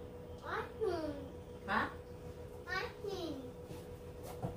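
A young girl talks in a high, lively voice nearby.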